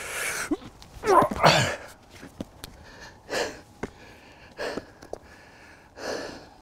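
Shoes scrape and scuff against rock.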